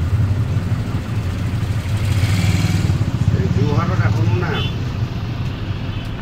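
A motor scooter passes close by.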